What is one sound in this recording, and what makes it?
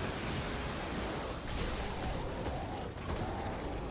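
Rapid gunfire rattles and explodes.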